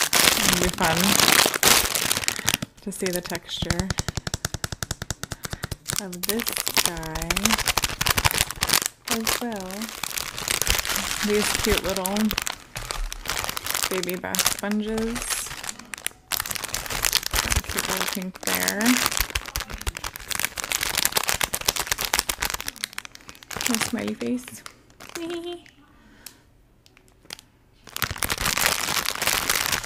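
Plastic wrap crinkles and rustles under fingers.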